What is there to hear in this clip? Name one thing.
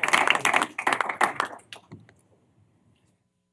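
A small group of people applauds in a room, then the clapping dies away.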